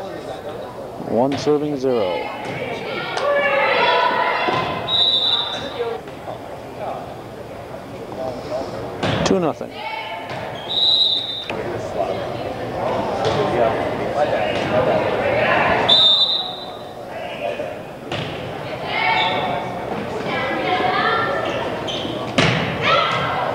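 A volleyball is struck with a dull thump.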